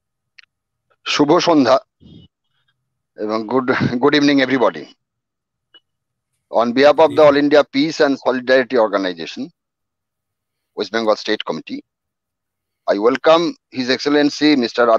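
A middle-aged man speaks with animation through a headset microphone over an online call, in bursts with pauses.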